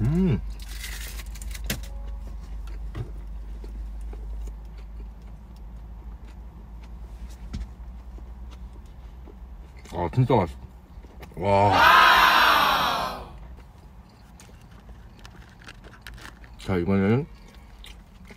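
A young man chews food with soft, wet smacking sounds close to a microphone.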